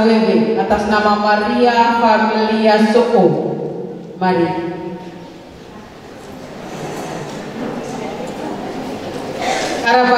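A man recites dramatically through a microphone in an echoing hall.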